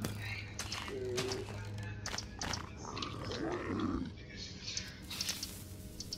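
Blocks are placed with soft thuds.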